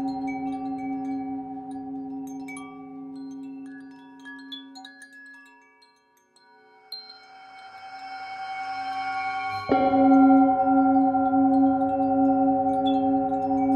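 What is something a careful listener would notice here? A metal singing bowl rings with a long, shimmering hum that swells and fades.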